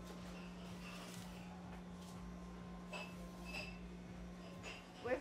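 Light fabric rustles and swishes.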